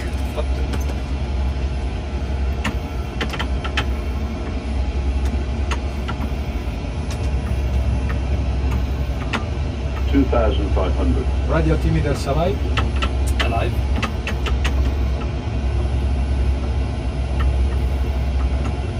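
A steady low engine hum fills an aircraft cockpit.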